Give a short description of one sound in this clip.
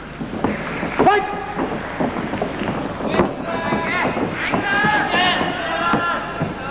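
Young spectators shout out in high, shrill calls.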